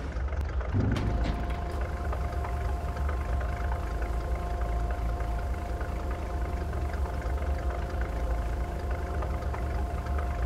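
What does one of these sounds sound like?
Grain pours with a steady hiss into a trailer.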